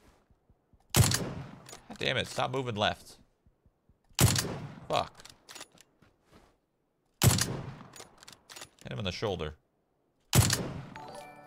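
Sniper rifle shots crack loudly, with a short echo.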